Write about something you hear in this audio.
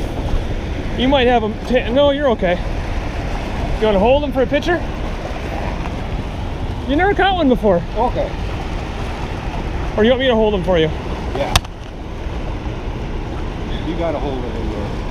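A man talks casually nearby in short bursts.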